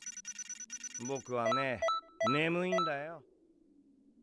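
Bright electronic chimes ring out in quick swells.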